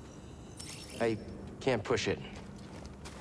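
A small robot chirps and warbles in quick electronic bursts.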